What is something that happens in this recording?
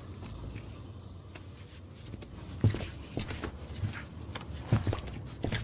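A man's footsteps move away on a hard floor.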